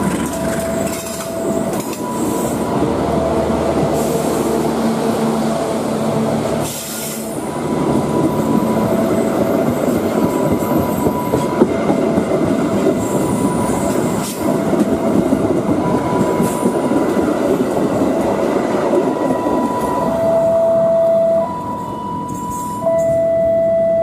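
Steel wheels squeal against the rails.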